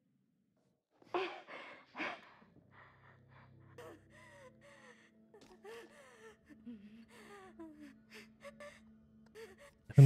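A young woman speaks in a low, tense voice, close by.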